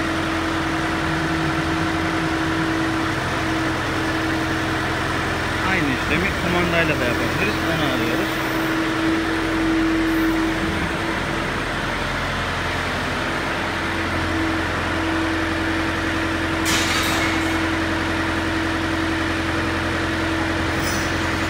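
A hydraulic pump hums steadily in a large echoing hall.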